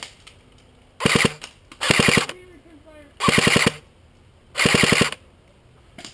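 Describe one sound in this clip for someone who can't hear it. An airsoft rifle fires short bursts.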